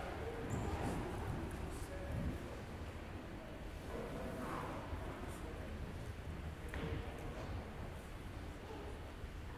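Bare feet shuffle and step on a wooden floor.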